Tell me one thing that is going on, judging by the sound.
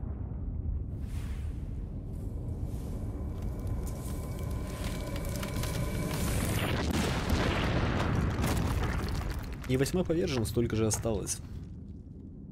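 A rushing whoosh swells and then cuts off.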